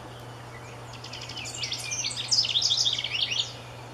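A bird sings a loud, fast warbling song close by.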